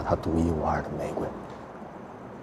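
A young man speaks softly and close by.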